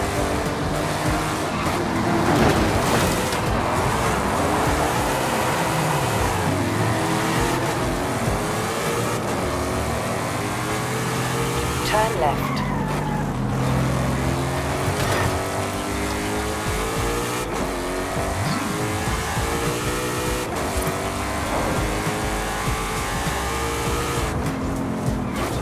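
A sports car engine roars, revving up and down through the gears.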